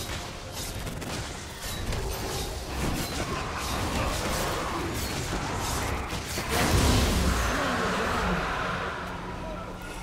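Magic blasts and hits crackle and burst in quick succession.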